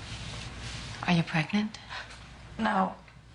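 A woman answers in short, hesitant phrases, close by.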